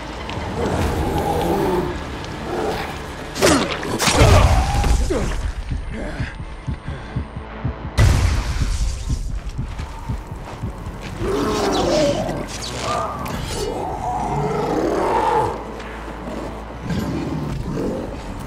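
A blade hacks into flesh with wet thuds.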